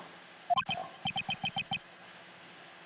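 Short electronic blips tick in quick, even succession.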